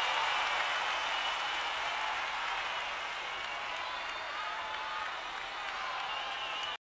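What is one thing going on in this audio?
A large crowd of young women screams and shrieks loudly.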